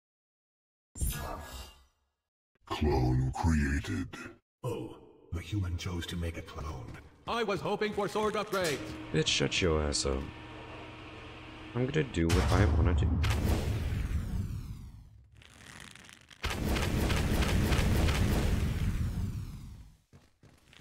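A young man talks into a microphone, close and with animation.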